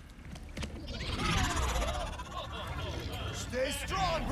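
Large robots whir and chirp with warbling electronic tones.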